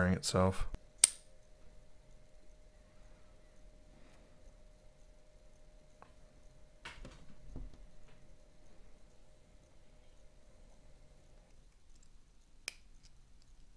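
Small metal parts click and tap as they are handled.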